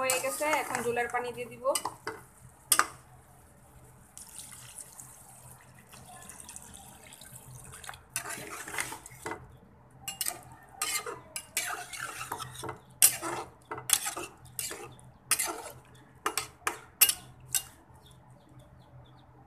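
A metal spoon scrapes and knocks against a pot.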